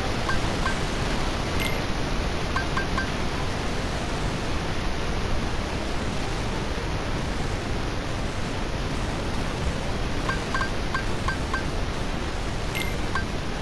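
Short electronic menu blips chime as a cursor moves.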